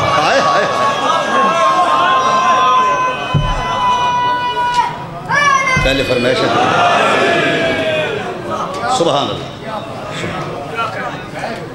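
A man chants loudly into a microphone, holding long notes.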